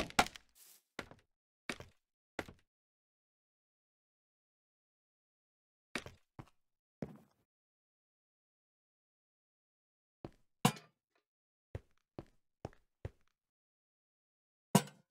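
Blocks are placed with short knocks.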